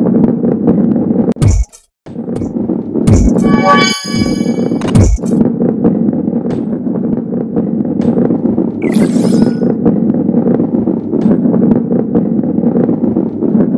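A ball rolls and rumbles along a wooden track.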